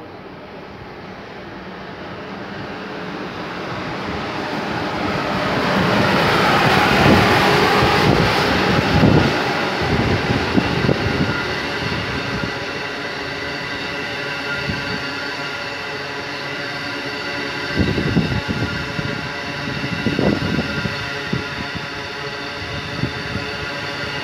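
A passenger train approaches and rushes past close by, its noise building to a loud roar.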